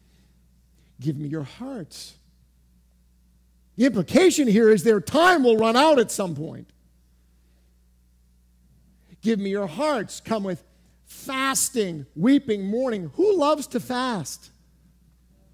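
A man preaches with animation through a microphone, pausing between phrases.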